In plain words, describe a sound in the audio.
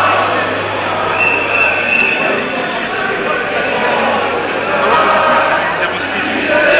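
A large outdoor crowd of men and women chatters and calls out nearby.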